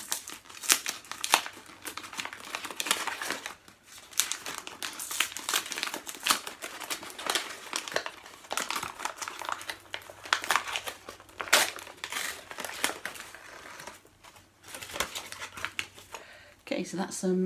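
Paper wrapping crinkles and tears.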